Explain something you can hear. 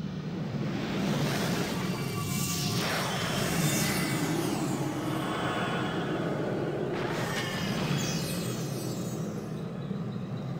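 Magic spells whoosh and shimmer with rising and falling chimes.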